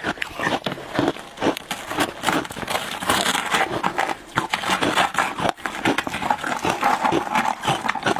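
A frozen slab of ice cracks as it is broken apart by hand.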